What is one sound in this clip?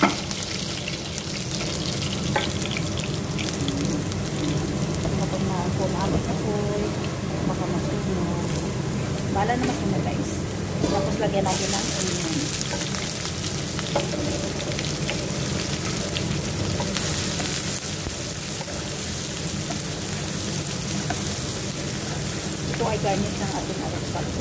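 Onions sizzle loudly in hot oil in a frying pan.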